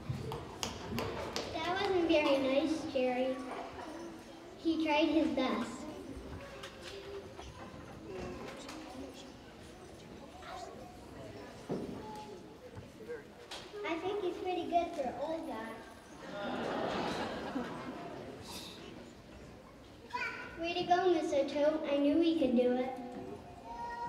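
A young girl speaks clearly into a microphone in a large hall.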